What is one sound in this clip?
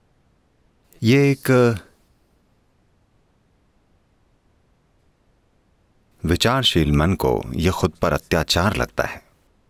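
An elderly man speaks calmly and slowly into a microphone, with long pauses.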